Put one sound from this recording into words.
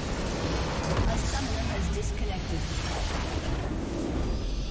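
A large structure explodes with a deep rumbling boom.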